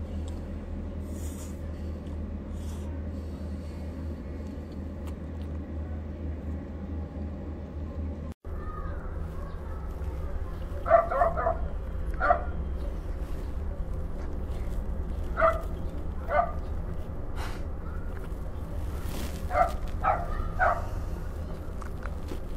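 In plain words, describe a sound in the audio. A young woman chews and smacks her lips close up.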